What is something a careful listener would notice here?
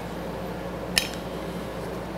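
A wooden block knocks onto a workbench.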